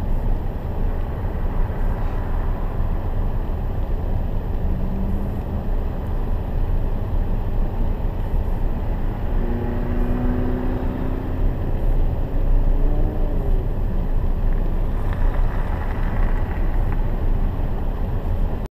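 Rain patters steadily on a car's windshield.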